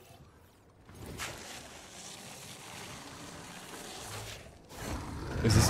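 Rocks crumble and rumble steadily.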